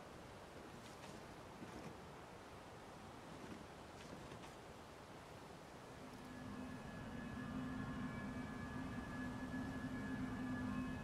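Wind blows steadily through tall grass.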